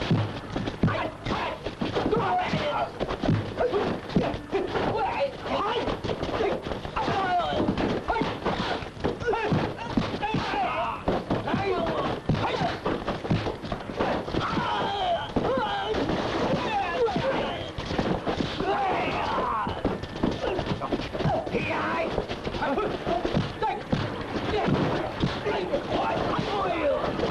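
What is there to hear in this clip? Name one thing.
Men shout and grunt while fighting.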